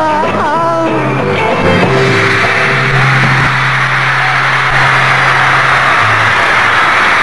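A band plays electric guitars loudly on stage.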